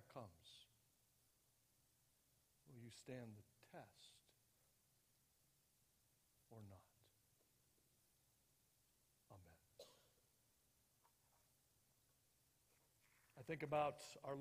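A middle-aged man speaks slowly and calmly through a microphone, with long pauses.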